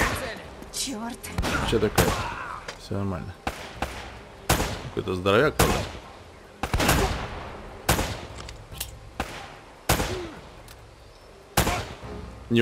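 A pistol fires sharp shots one after another, with echoes.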